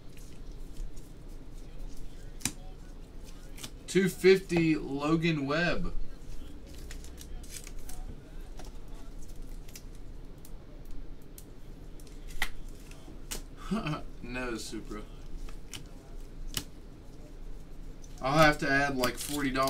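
Trading cards tap and slide against each other.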